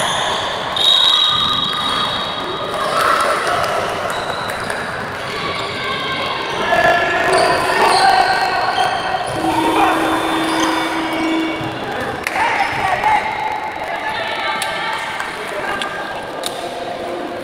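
Young women players shout to each other in a large echoing hall.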